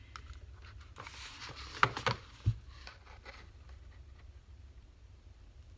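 Stiff paper rustles as it is lifted and shifted.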